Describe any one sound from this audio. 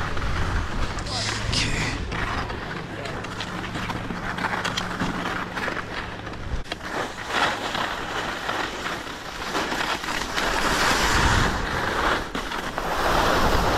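A sled slides and scrapes fast over snow.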